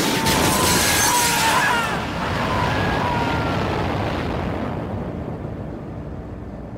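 A rocket roars as it climbs away and fades into the distance.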